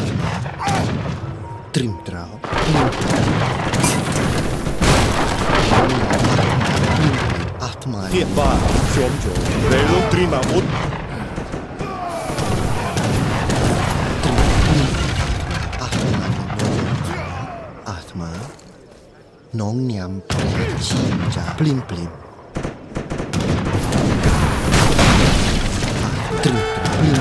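Weapons clash and thud in a noisy battle.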